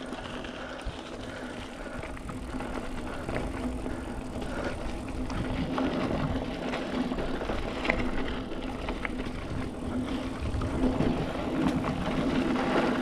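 Bicycle tyres roll and crunch over a dirt trail.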